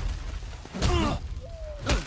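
Fists land heavy blows on a body.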